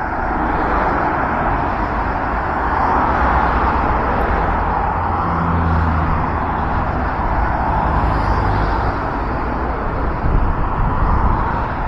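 Traffic rolls past steadily on a busy road outdoors.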